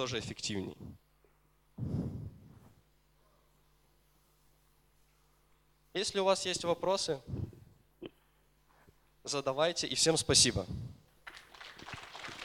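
A man speaks into a microphone in a large hall, pausing between phrases.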